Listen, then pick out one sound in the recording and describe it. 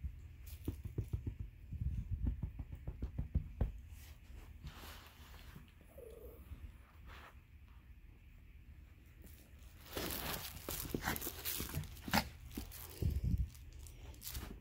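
A small dog's paws patter and thump on carpet.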